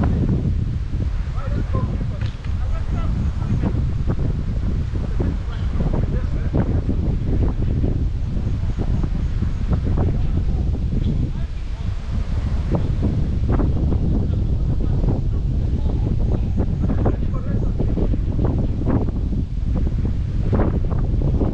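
Young men shout and call out to one another across an outdoor pitch.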